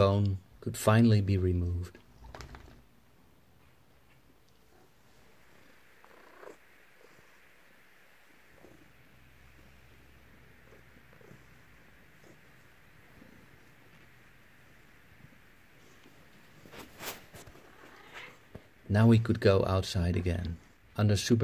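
A cat meows loudly and insistently, close by.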